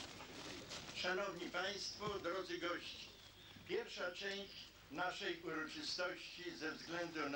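An elderly man speaks slowly into a microphone, amplified over loudspeakers outdoors.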